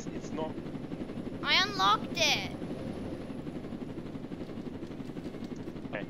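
A helicopter engine hums steadily.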